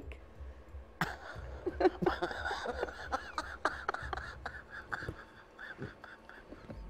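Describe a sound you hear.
A woman laughs heartily.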